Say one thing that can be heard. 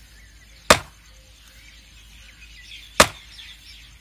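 A hoe strikes dry soil.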